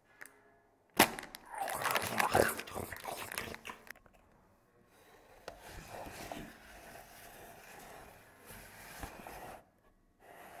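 Thin plastic packaging crinkles and crackles.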